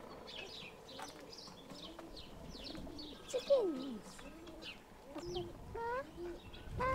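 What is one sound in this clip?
Birds chirp and twitter busily nearby.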